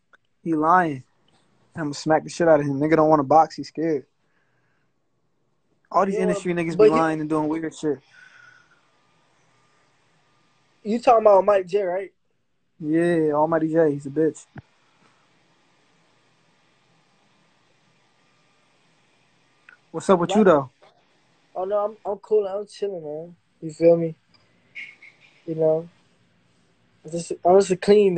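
A young man talks casually through a phone microphone in bursts, with pauses.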